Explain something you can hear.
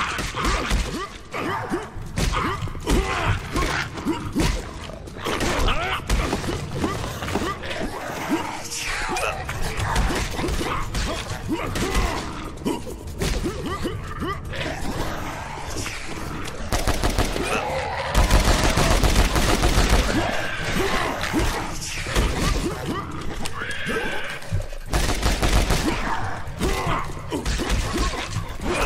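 Rapid gunfire blasts again and again.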